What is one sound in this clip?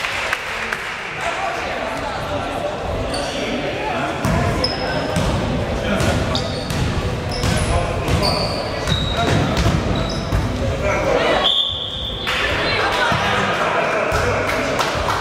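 Spectators chatter in a large echoing hall.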